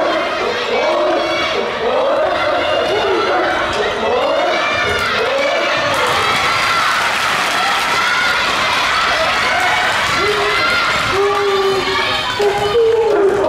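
A crowd of young spectators shouts and chants loudly in an echoing hall.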